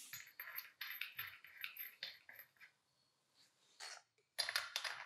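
A spark plug scrapes and clicks as it is screwed into an engine.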